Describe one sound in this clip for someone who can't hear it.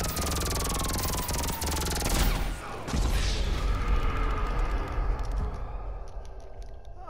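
Gunfire and explosions crash loudly.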